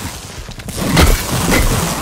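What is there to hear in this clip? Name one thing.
An electric blast crackles and zaps.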